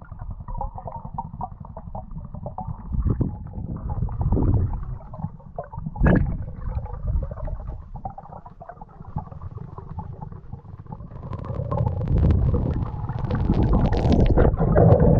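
Water rushes and churns with a deep, muffled rumble throughout.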